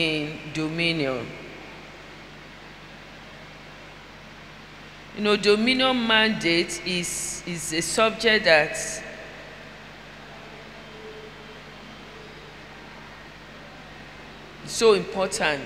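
A woman preaches with animation into a microphone, in bursts with long pauses.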